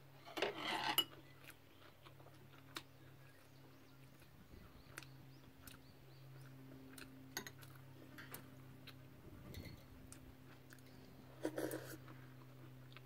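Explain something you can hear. Chopsticks click against a bowl.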